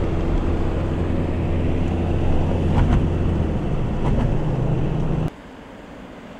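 Tyres rumble steadily on a road from inside a moving car.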